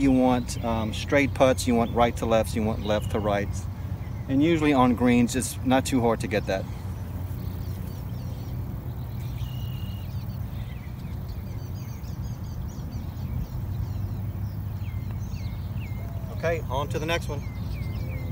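A man speaks calmly and close by.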